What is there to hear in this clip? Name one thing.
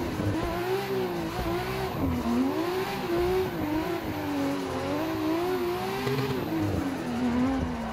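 Tyres squeal as a car slides through corners.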